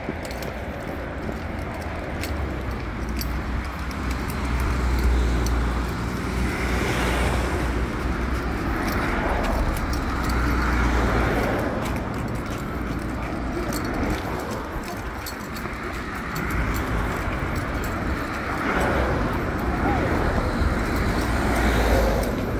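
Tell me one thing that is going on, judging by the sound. Footsteps patter on a paved sidewalk.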